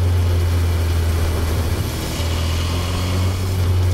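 A small van passes by in the opposite direction.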